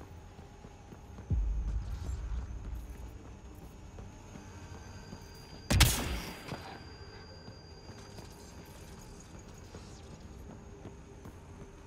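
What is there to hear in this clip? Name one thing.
Heavy boots thud on hard ground.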